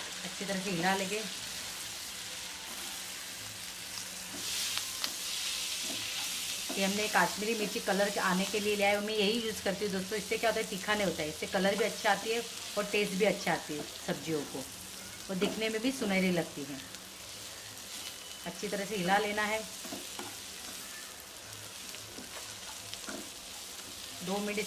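A spatula scrapes and stirs vegetables in a frying pan.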